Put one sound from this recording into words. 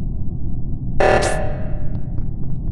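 A loud alarm blares.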